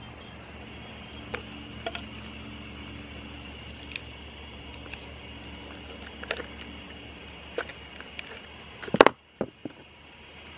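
A tool scrapes and taps against a clay pot.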